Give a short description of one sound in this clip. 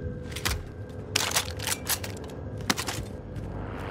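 A gun clicks and rattles as it is handled.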